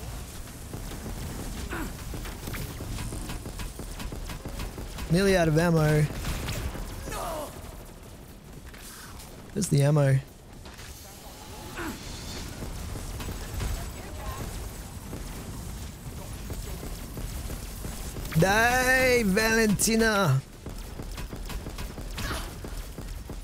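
A ray gun fires crackling energy blasts.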